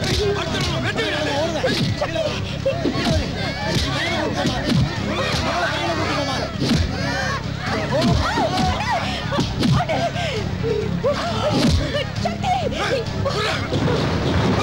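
A crowd of men and women shouts and wails in panic.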